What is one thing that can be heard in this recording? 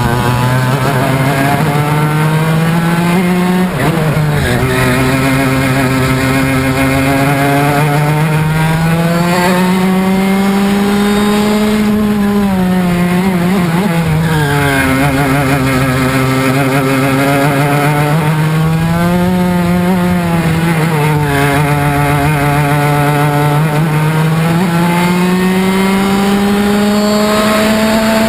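A go-kart engine buzzes loudly close by, its pitch rising and falling as it speeds up and slows for corners.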